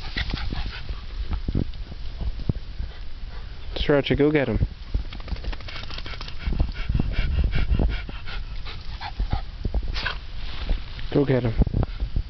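A small dog pushes through tall grass, rustling the stalks.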